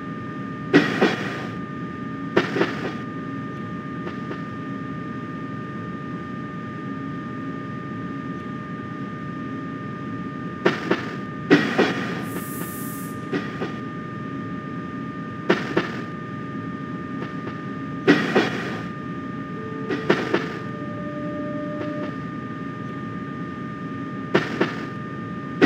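An electric motor whines with a steady high tone.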